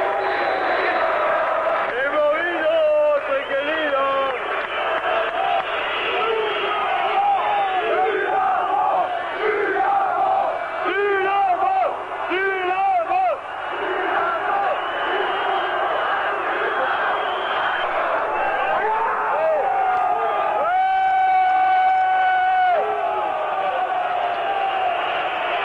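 A large stadium crowd chants and sings loudly in unison.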